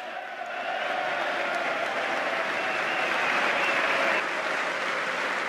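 A crowd cheers and whoops.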